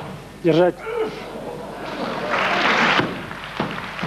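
A barbell crashes down onto the floor.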